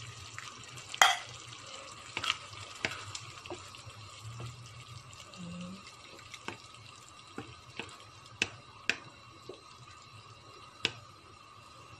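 A wooden spoon knocks against the side of a frying pan.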